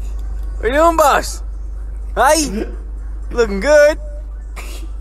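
A young man laughs and exclaims with amusement into a microphone.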